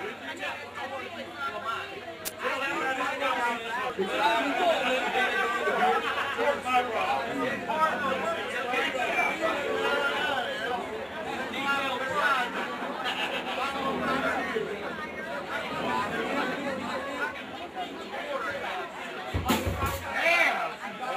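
Men and women chat nearby in a crowd.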